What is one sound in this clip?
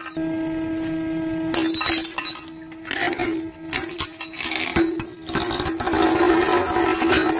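A hydraulic press hums steadily.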